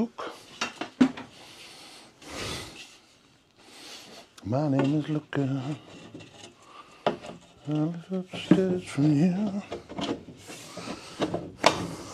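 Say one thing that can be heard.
Wooden boards knock against each other.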